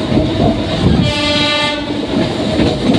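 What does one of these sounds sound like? A train horn sounds loudly for about a second.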